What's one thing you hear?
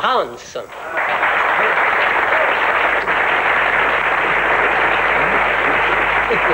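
A crowd claps and applauds steadily.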